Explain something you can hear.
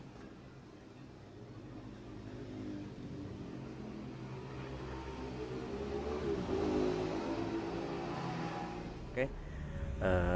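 A motorcycle engine runs and slowly revs up.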